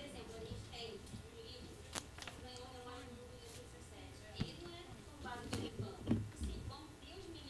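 An elderly woman speaks calmly into a microphone.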